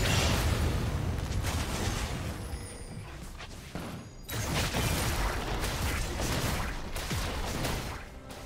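Magic spells whoosh and crackle in a fast fantasy battle.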